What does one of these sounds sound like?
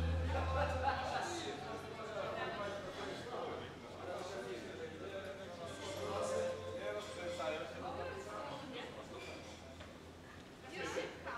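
Men and women talk nearby in an echoing hall.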